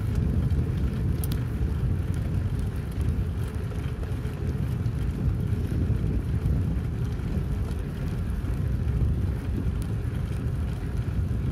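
Wind rumbles and buffets outdoors while riding along a road.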